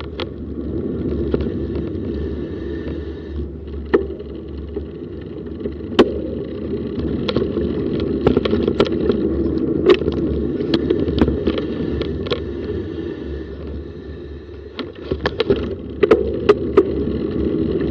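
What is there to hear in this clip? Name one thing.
Wind rumbles steadily past a moving bicycle outdoors.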